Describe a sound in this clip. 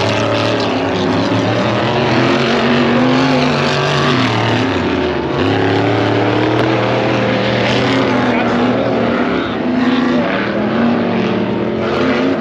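Small model car engines buzz and rev loudly, rising and falling in pitch.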